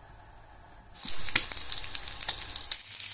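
An egg sizzles and crackles in hot oil.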